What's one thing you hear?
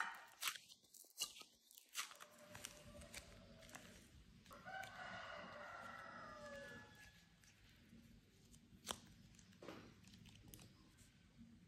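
Soft play dough squishes and squelches between fingers.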